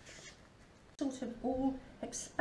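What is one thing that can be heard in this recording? An elderly woman speaks calmly close by.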